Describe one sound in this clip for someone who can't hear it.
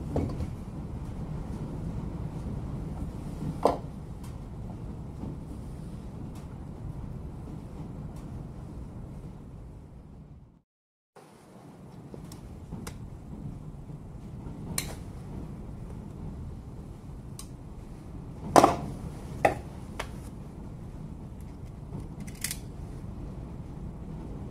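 Metal tools click and scrape against a power tool.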